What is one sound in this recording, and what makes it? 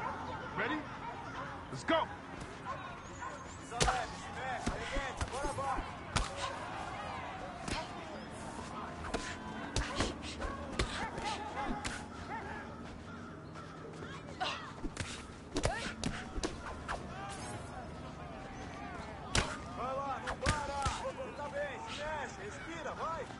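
A crowd cheers and shouts around a fight.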